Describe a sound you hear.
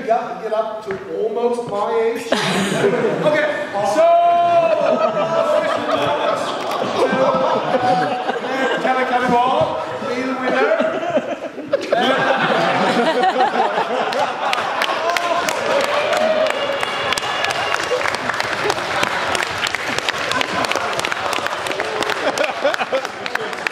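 A man speaks loudly and with animation in a large echoing hall.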